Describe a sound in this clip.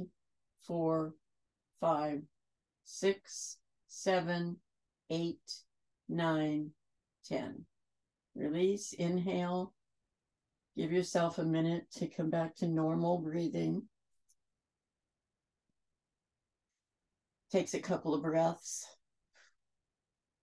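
A woman speaks slowly and calmly, in a soft guiding voice, with long pauses.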